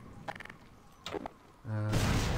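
A gun clicks as it is readied.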